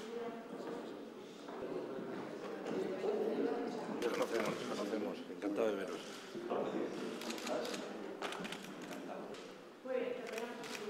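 Several men talk to one another up close as they greet.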